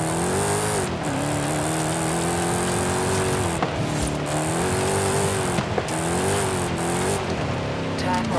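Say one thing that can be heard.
A car engine roars loudly, its pitch climbing and dropping with each gear change.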